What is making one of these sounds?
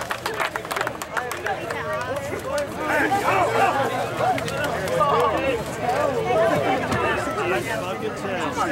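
A crowd of young men cheer and shout outdoors.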